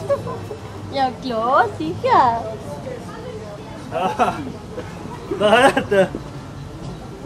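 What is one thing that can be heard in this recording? A young woman calls out excitedly nearby.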